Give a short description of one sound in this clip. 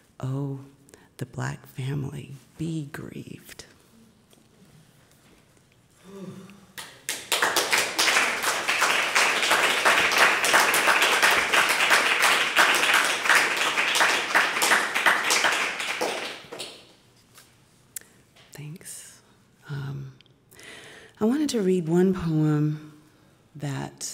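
A woman reads out calmly through a microphone.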